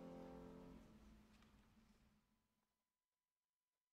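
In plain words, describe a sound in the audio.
A choir sings a held final chord that fades away in a large echoing hall.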